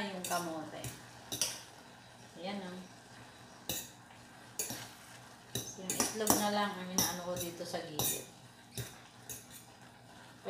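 A metal spoon clinks and scrapes against a pot.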